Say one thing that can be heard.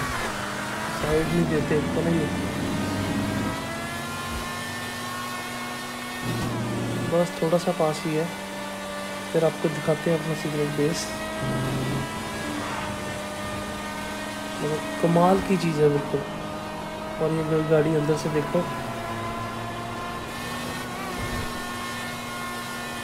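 A sports car engine roars steadily at speed, its pitch dipping briefly at each gear change.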